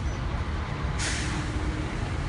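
A bus passes nearby.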